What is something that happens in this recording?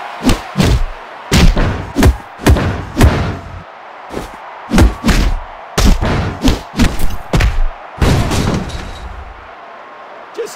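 Heavy punches and kicks land with loud thuds and booming impacts.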